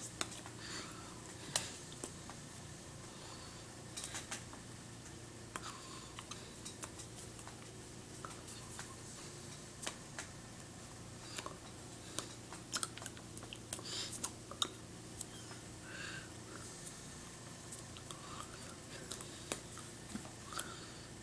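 Hands tap and brush together with soft clicks.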